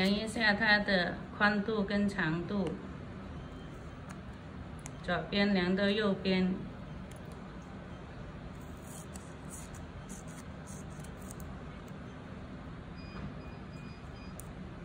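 Small scissors snip through thin paper.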